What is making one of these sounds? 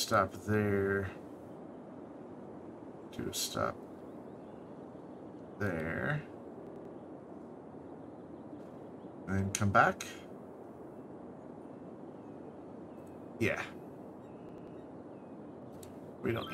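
A man talks in short bursts into a close microphone, casually.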